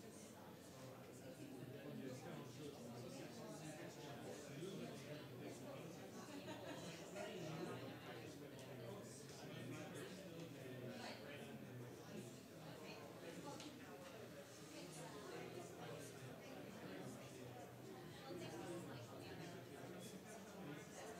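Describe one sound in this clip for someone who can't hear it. Many men and women chat at once in a large room, a steady murmur of voices.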